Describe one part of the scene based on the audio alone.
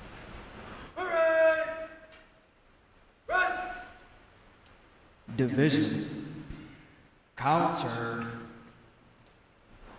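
A man shouts drill commands that echo through a large hall.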